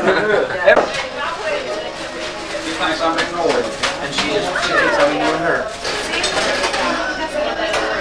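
Men and women talk over one another close by.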